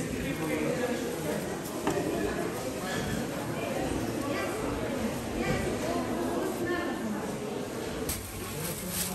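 Gloved hands squelch and rub on a wet sausage casing.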